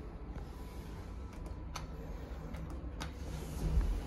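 A finger presses a lift button with a click.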